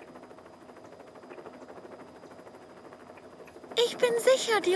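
A helicopter's rotor chops steadily.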